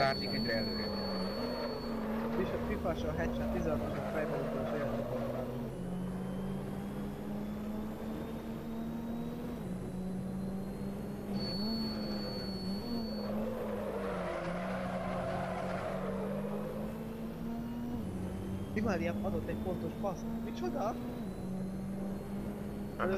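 Tyres squeal and rumble over kerbs.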